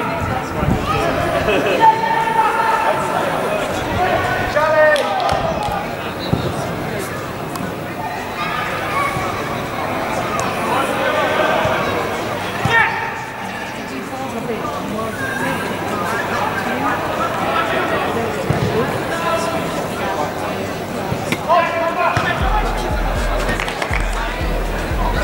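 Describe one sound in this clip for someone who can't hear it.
Young men shout to each other from a distance across an open outdoor pitch.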